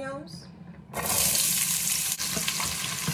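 Chopped onions sizzle in hot oil.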